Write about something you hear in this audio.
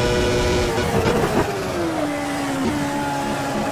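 A racing car engine drops in pitch as the car brakes into a corner.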